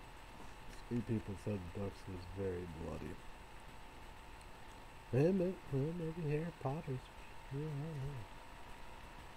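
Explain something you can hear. A man speaks casually, close by.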